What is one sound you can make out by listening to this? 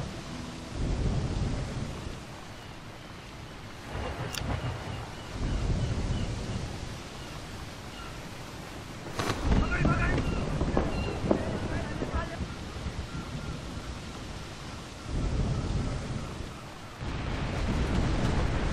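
Stormy sea waves surge and crash in gusts of wind.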